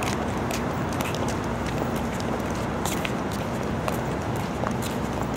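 Sandals slap softly on paving as a girl walks.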